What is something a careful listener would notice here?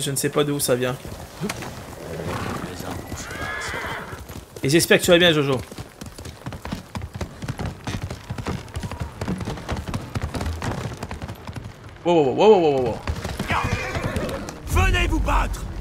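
Horse hooves thud on the ground and wooden planks.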